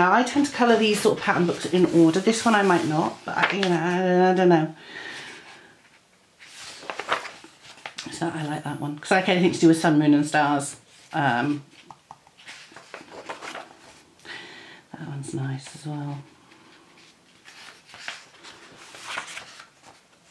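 Paper pages of a book are turned over.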